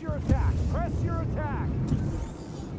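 Laser blasters fire in quick, zapping bursts.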